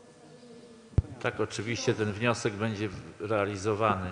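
A man speaks loudly and clearly into a microphone in an echoing hall.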